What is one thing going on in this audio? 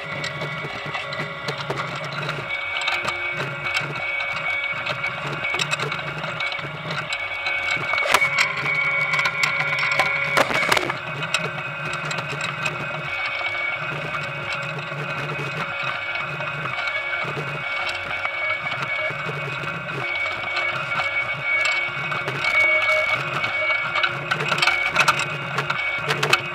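A potato harvester's machinery rattles and hums steadily outdoors.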